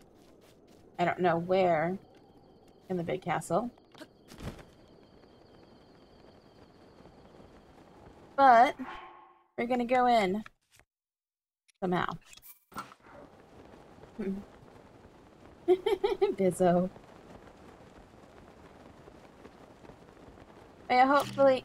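A woman talks with animation into a headset microphone.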